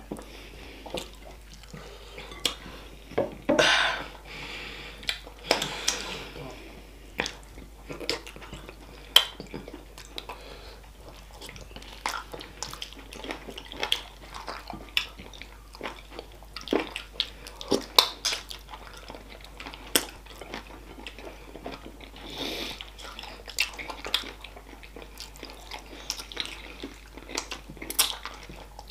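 A woman sucks sauce off her fingers with wet smacking sounds.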